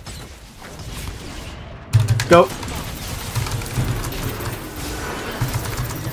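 Fantasy battle sound effects clash and zap in a video game.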